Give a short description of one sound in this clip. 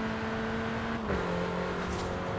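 A car engine drops in pitch briefly as a gear shifts.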